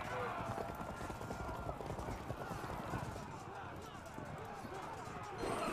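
A battle rages with a steady din of clashing soldiers.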